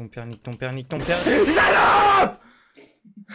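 A young man screams in fright through a headset microphone.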